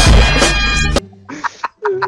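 A bright game chime sounds as a card is played.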